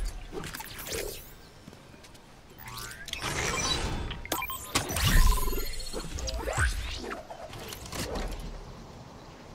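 Short electronic chimes and whooshes sound in quick bursts.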